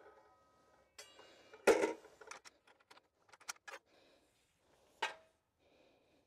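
A cut metal piece clinks as hands pick it up.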